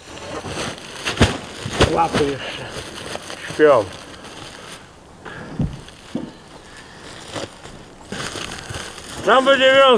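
Lumps of charcoal clatter in a burlap sack as it is handled.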